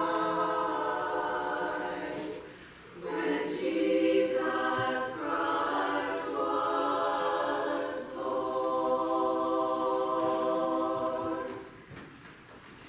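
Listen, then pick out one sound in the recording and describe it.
A choir sings together in a large echoing hall.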